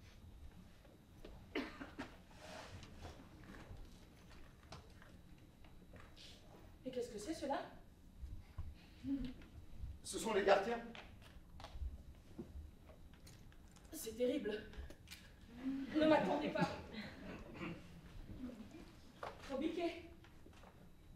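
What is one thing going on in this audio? A woman speaks.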